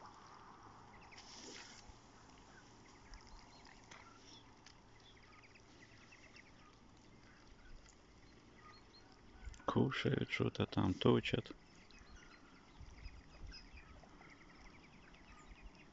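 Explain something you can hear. Ducks quack softly close by.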